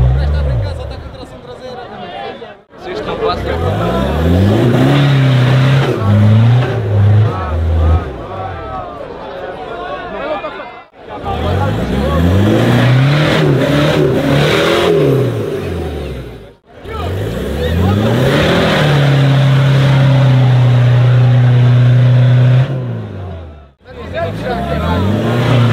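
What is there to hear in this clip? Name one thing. An engine revs hard again and again, rising and falling in pitch.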